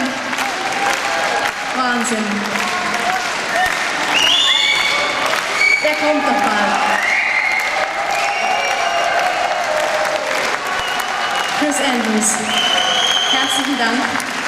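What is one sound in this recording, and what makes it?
A large crowd claps and cheers loudly.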